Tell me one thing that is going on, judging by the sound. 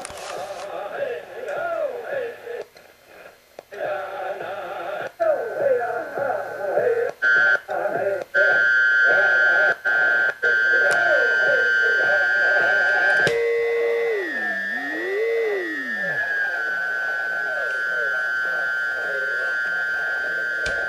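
A man talks through a small radio loudspeaker.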